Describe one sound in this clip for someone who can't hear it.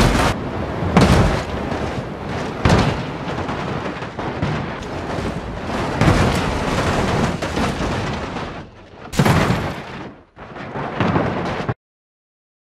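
A truck crashes and tumbles down a rocky slope with loud thuds.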